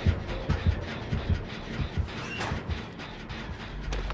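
A wooden locker door bangs open.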